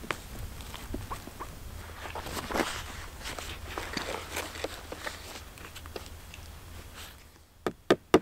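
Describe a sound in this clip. Heavy cloth rustles and scrapes as it is handled.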